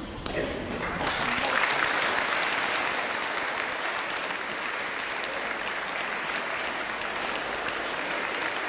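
A group of children chatter and murmur in a large echoing hall.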